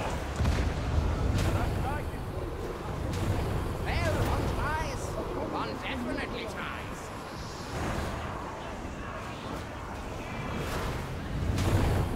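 A weapon fires in loud, rapid blasts.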